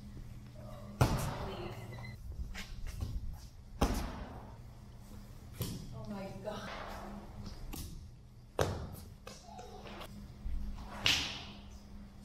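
A child's feet thud on landing after each jump.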